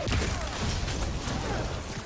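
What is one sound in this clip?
Electric crackling bursts out in a flash.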